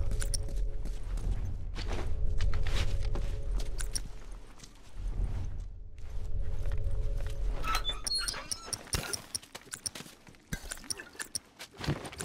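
Soft footsteps shuffle on a hard floor.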